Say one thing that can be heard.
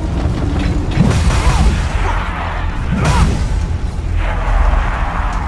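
A heavy sword swings and clangs against an enemy.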